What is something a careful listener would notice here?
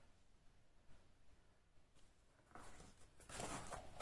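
A box lid closes with a soft thud.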